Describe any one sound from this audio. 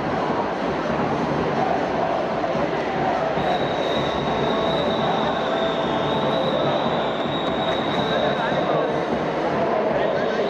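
A volleyball thuds off players' forearms as it is passed back and forth.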